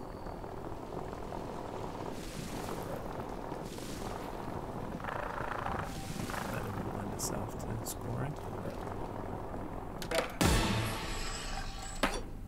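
Skateboard wheels roll over hard ground.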